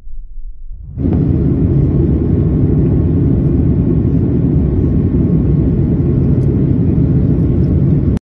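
A jet engine roars steadily, heard from inside the plane cabin.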